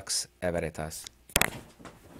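A man speaks briefly, close by.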